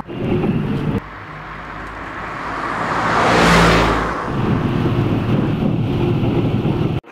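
A vehicle's engine rumbles steadily while riding along.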